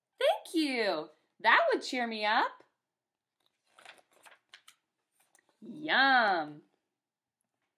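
A young woman reads aloud with lively, playful voices into a nearby microphone.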